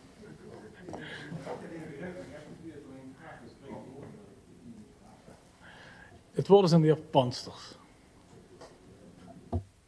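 A man laughs softly.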